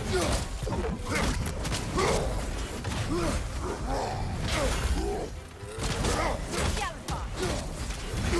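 Heavy blows and thuds land in a fight.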